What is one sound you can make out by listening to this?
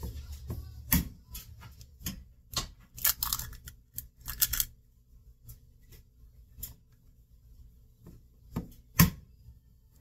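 An egg cracks sharply against the rim of a glass bowl.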